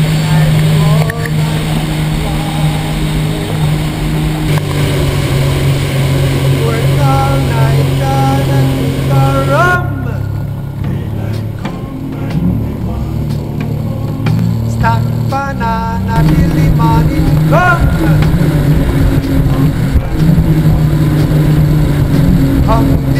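A jet ski engine roars steadily and revs up and down.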